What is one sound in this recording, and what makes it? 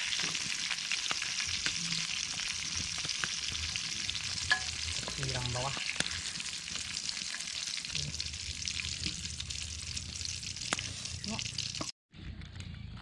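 Oil sizzles and crackles steadily in a pan.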